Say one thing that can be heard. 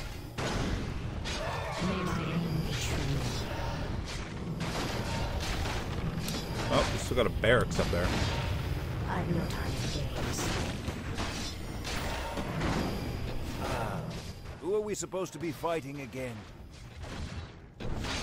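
Weapons clash and magic spells crackle.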